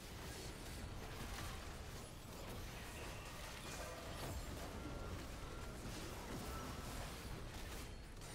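Game battle sounds of magic blasts and hits clash continuously.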